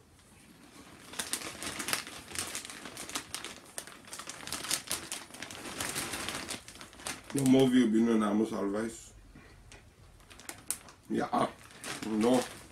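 A plastic snack bag crinkles and rustles close by.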